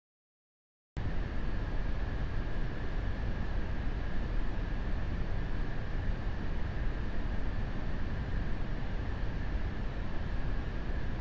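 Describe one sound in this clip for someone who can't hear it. A jet engine roars steadily inside a cockpit.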